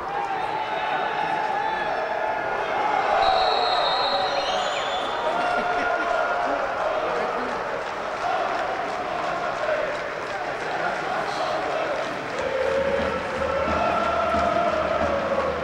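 A crowd of fans sings chants across a large open stadium.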